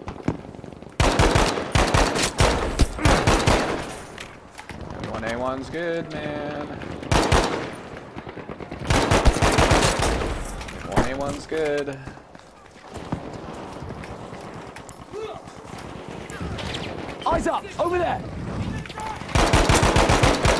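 Rifle shots fire sharply and loudly.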